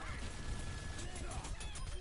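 Weapons fire in a shooter video game.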